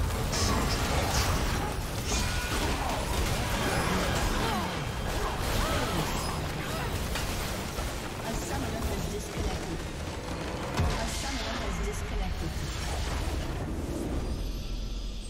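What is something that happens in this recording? Spells and blows crackle and clash in a busy fight in a video game.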